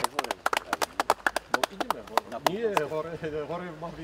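A small group of people clap outdoors.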